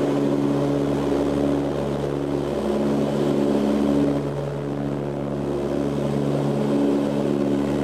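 Propeller engines drone steadily and loudly, with a low throbbing hum.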